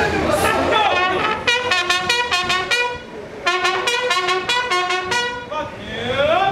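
A bugle plays a short call.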